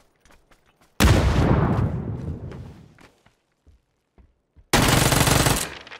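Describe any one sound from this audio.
Loud gunfire bursts out close by and echoes away.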